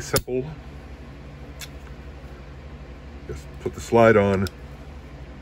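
Metal parts of a pistol click as they are taken apart.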